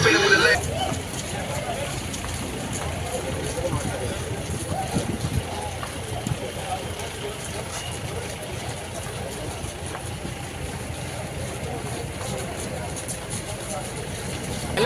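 A large crowd of people walk and jog along a street, their footsteps shuffling.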